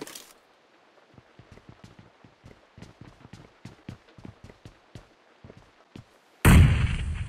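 Footsteps tap quickly on hard stairs.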